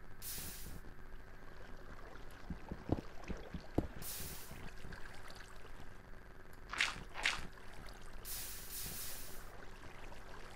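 Water splashes and swishes in short bursts.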